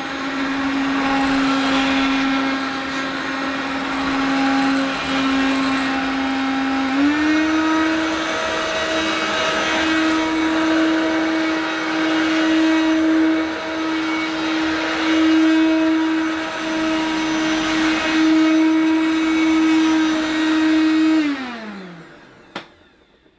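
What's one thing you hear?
An upright vacuum cleaner runs with a loud, steady whine, then winds down and stops.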